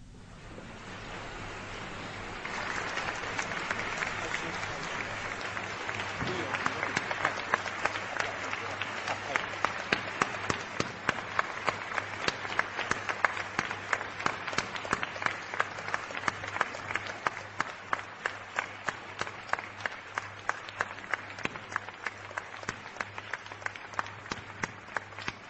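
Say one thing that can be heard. A large crowd applauds in an echoing hall, the clapping swelling and then settling into steady rhythmic claps.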